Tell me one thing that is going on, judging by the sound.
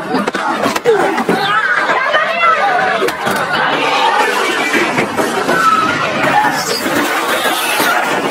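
A crowd of people shouts in a commotion.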